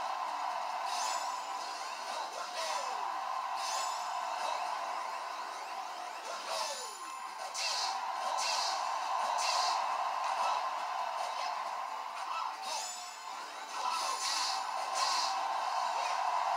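Video game punches and blasts crack sharply through a television speaker.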